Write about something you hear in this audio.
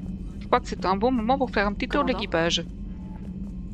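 A young woman talks with animation through a microphone.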